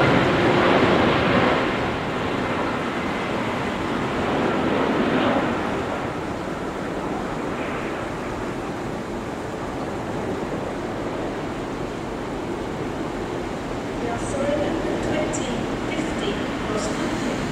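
A diesel locomotive rumbles as it approaches slowly.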